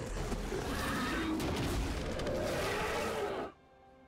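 Sharp game combat effects clash and thud.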